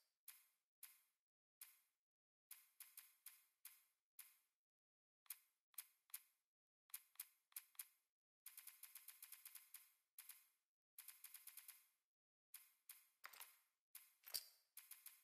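Short, sharp menu clicks tick again and again, sometimes in quick bursts.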